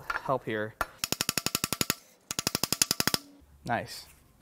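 A mallet taps rapidly on metal.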